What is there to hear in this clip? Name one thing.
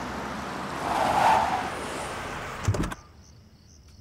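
A car engine hums as a car pulls up.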